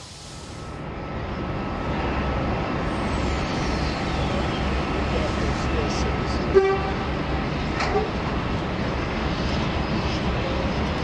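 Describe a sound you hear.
A steam tank engine chuffs hard hauling passenger carriages.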